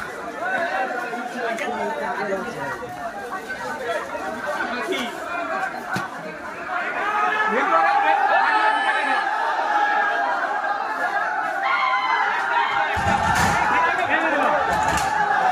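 Several men shout and talk excitedly nearby.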